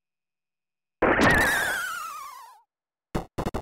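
A retro game sound effect sweeps downward.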